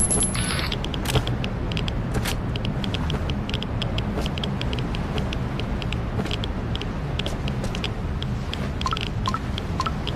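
Footsteps thud steadily on a metal deck.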